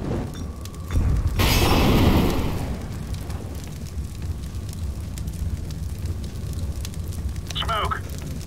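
Flames whoosh up and crackle steadily.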